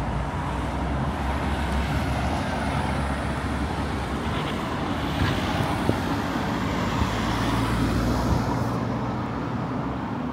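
Cars drive past close by.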